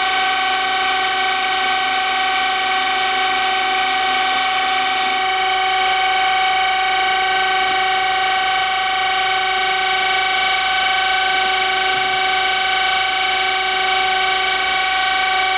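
A machine motor whines steadily at a high pitch.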